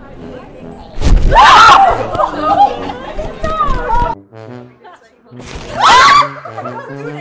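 Young women scream in fright.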